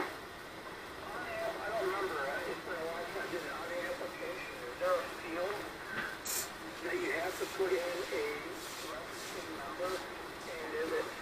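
A man talks over a radio receiver, thin and narrow-sounding.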